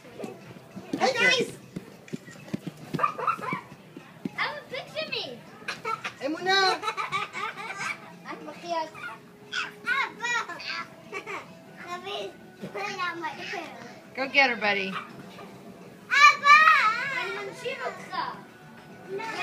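A baby babbles and squeals nearby.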